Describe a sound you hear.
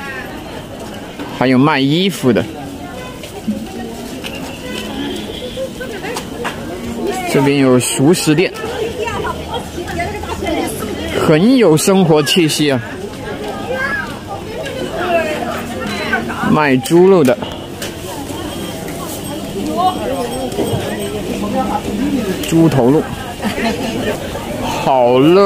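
A crowd chatters in a busy outdoor market.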